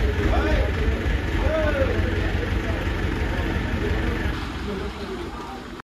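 A crowd of men chatters and calls out nearby, outdoors.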